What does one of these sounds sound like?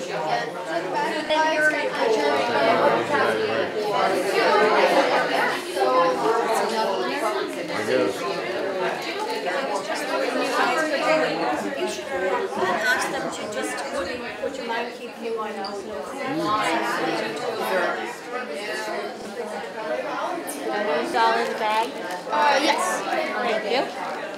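Many adults chatter together close by in a busy room.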